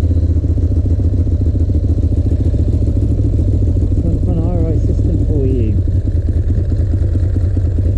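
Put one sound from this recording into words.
A motorcycle engine rumbles steadily at low speed, close by.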